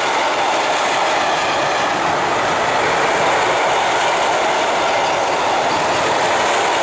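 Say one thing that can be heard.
A freight train rumbles and rattles steadily along the tracks.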